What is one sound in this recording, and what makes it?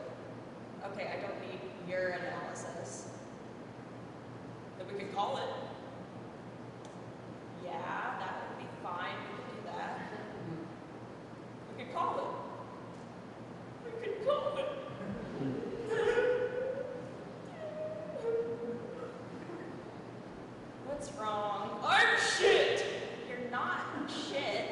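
A woman speaks expressively in short bursts with pauses, in a room with a slight echo.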